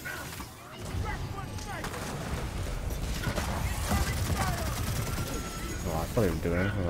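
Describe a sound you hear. A gun fires rapid bursts.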